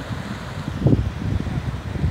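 Small waves wash gently onto a shore.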